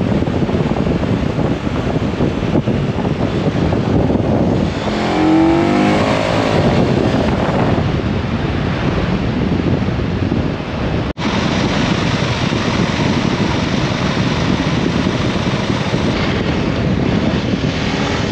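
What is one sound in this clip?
A motorcycle engine runs steadily at speed.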